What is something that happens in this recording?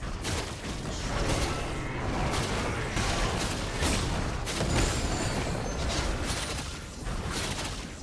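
Spell effects burst and whoosh in a video game battle.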